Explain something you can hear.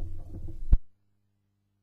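Music plays from a vinyl record.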